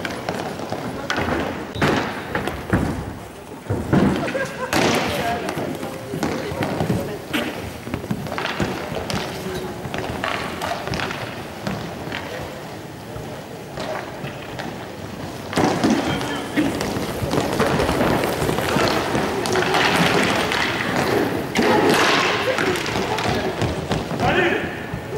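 Hockey sticks clack against a ball and the floor in a large echoing hall.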